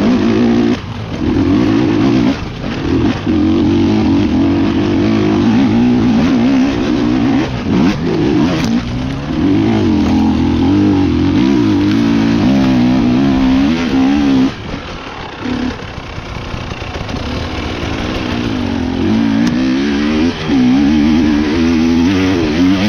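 A dirt bike engine roars close by, revving up and down.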